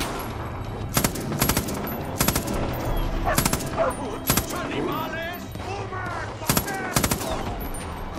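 Gunshots crack sharply, one at a time.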